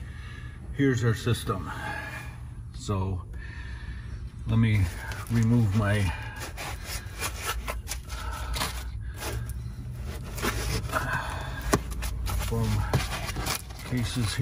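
Hands pat and rub a crinkly foil-covered box.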